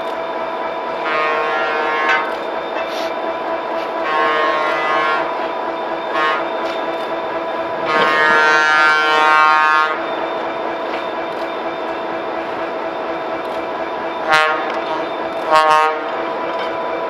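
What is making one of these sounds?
A train horn blows in several loud blasts, some long and some short.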